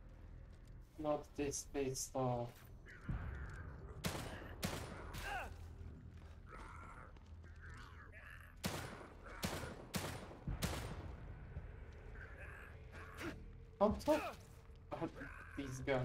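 A creature snarls and groans.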